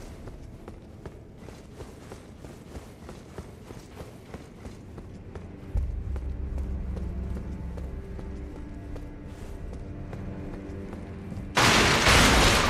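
Footsteps tap quickly on a hard stone floor in a large echoing hall.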